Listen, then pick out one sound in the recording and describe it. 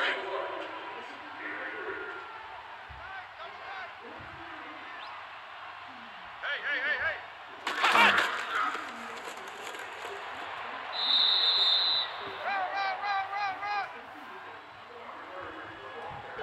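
A stadium crowd murmurs and cheers in the background.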